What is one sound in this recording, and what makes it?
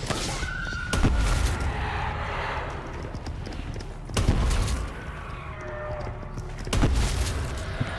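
Gunshots boom loudly a few times.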